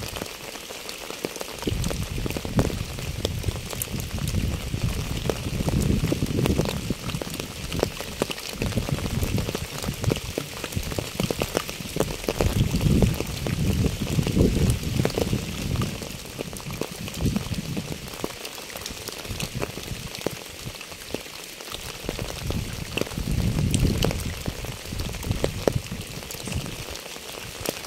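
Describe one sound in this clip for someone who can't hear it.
Rain patters steadily on a wet path and puddles outdoors.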